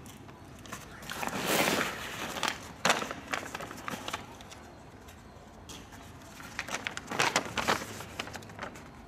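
Paper rustles and crinkles as hands handle a sheet of paper.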